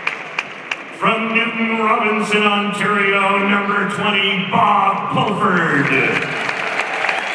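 Music plays loudly through loudspeakers, echoing around the arena.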